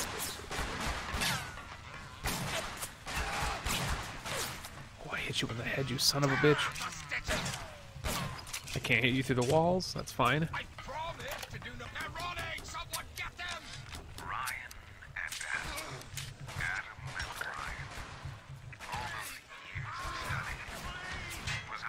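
Pistol shots fire in quick bursts, with sharp cracks.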